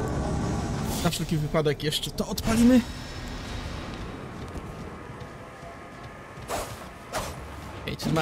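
A heavy blade swishes through the air.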